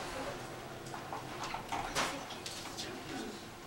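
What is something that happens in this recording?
A window latch clicks and rattles as it is handled.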